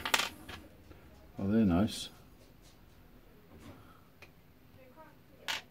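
Small metal pieces clink and tap together in someone's hands.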